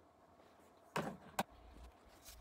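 A metal caliper clicks as it is set down.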